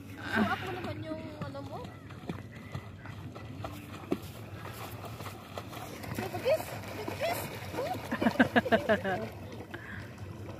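Water splashes as a swimmer kicks and strokes nearby.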